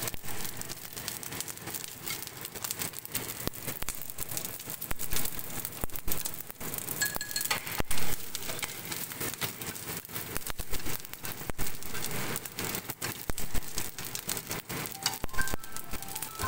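Food sizzles and crackles in hot oil in a pan.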